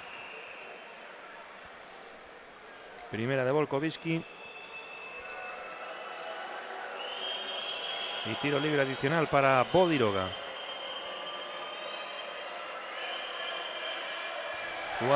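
A large indoor crowd murmurs steadily in an echoing arena.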